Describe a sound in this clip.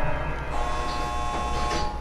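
A generator rattles and clanks.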